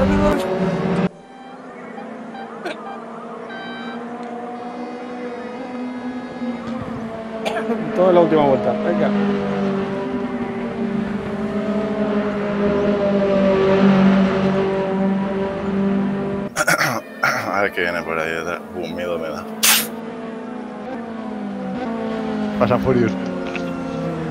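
A racing car engine drones steadily, rising and falling in pitch as it shifts gears.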